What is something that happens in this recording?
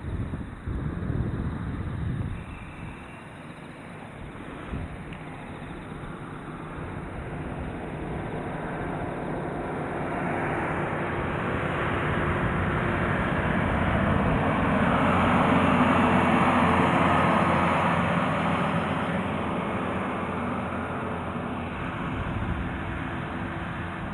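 Water laps gently against rocks along the shore.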